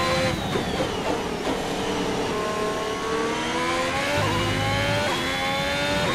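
A racing car's tyres hiss on the tarmac.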